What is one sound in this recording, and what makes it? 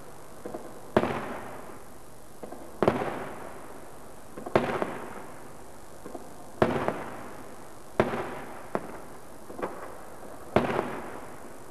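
Fireworks crackle and fizz after each burst.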